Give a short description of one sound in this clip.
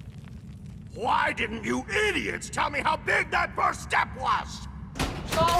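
A man speaks in an exaggerated, theatrical character voice.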